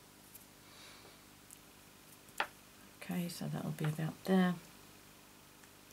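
Metal tweezers tap on card.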